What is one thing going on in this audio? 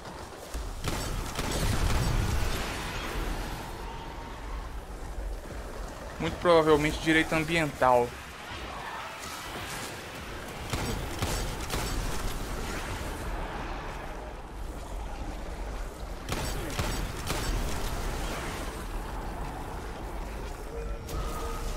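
Rapid gunfire and explosions crackle from a video game.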